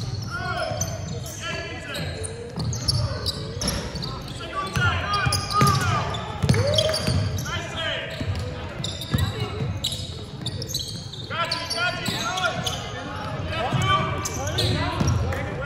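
Teenage players shout and call to each other across the court.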